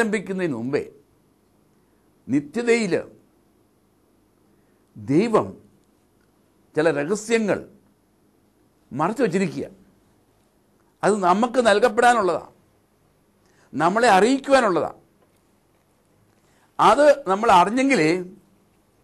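An elderly man speaks slowly and calmly into a close microphone, in short phrases with pauses.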